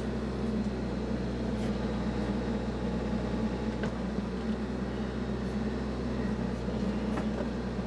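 A backhoe bucket scrapes and digs into soil and roots.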